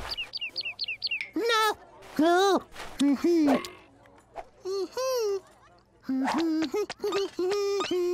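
A crowd of cartoon chicks chirps and peeps.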